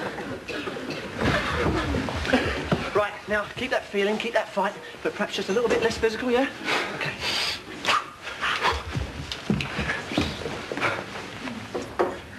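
A young man speaks with animation up close.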